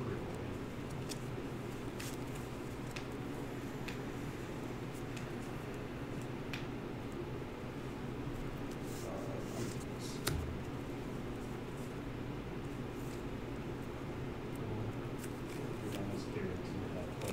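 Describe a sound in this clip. Playing cards are shuffled and flicked in hands with soft clicks.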